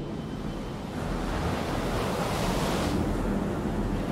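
Stormy waves crash and roar.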